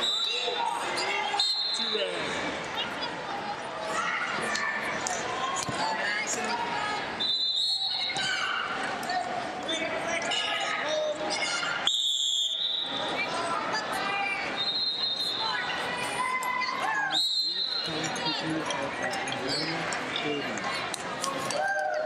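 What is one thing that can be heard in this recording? People chatter in a large echoing arena.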